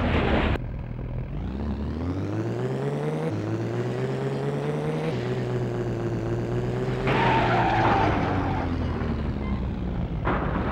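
A race car engine revs and climbs through the gears.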